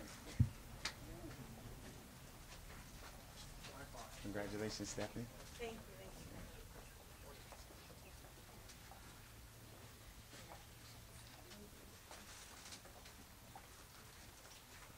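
A small crowd murmurs and chatters outdoors.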